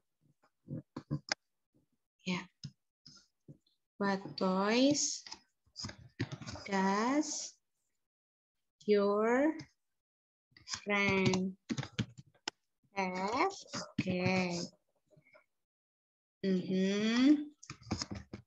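A woman speaks slowly and clearly over an online call.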